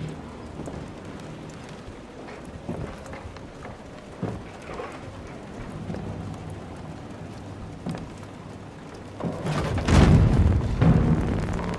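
Footsteps tread slowly on creaking wooden boards.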